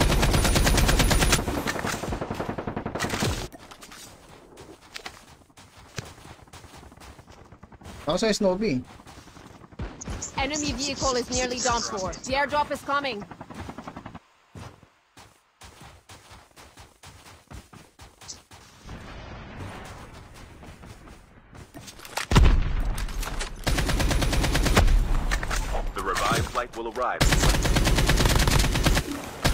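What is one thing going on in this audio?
Rapid gunfire from a video game rattles loudly.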